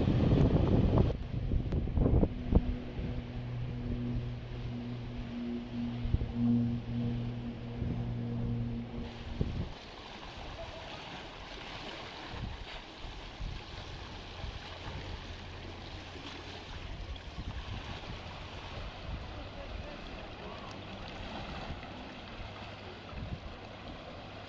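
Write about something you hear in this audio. Gentle waves lap against a stone wall.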